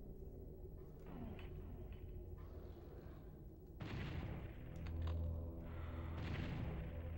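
Shotgun blasts boom with a heavy echo.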